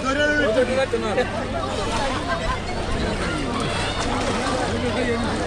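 A crowd of men and children chatter loudly nearby, outdoors.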